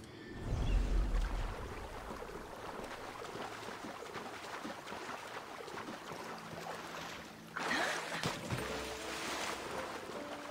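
Water sloshes steadily around a swimmer.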